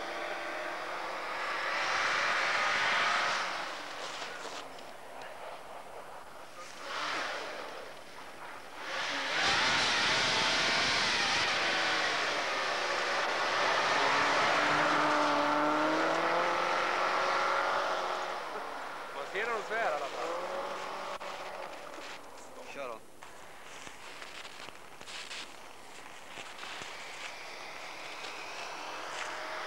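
A rally car engine roars and revs hard.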